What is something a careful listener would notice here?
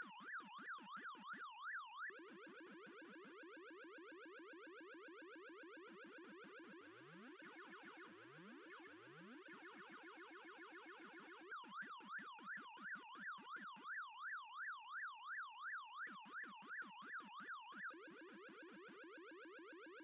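Electronic arcade game sounds chirp and warble in a quick repeating pattern.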